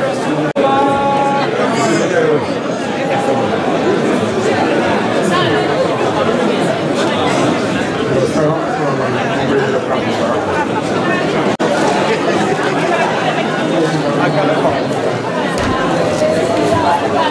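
A large crowd of men and women chatters and murmurs.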